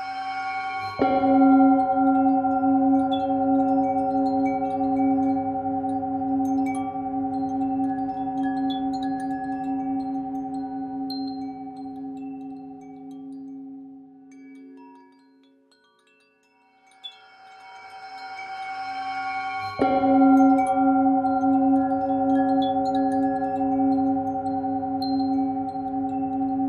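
A singing bowl is struck and rings out with a long, slowly fading tone.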